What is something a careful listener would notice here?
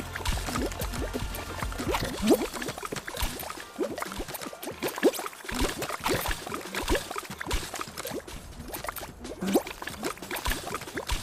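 A cartoonish game character hops with bouncy sound effects.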